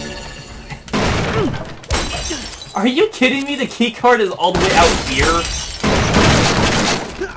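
Heavy blows thud and crash in a brawl.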